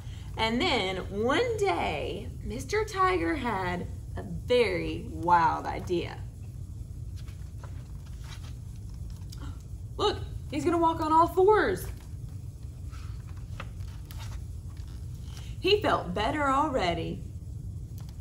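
A young woman reads aloud expressively, close to a microphone.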